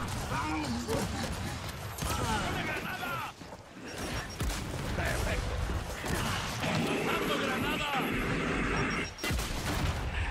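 Rapid gunfire rattles and bangs.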